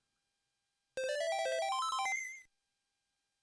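An eight-bit game console plays a short rising jingle.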